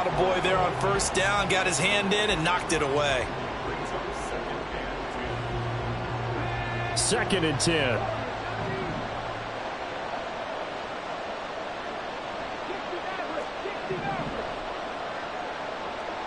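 A large crowd murmurs and cheers steadily.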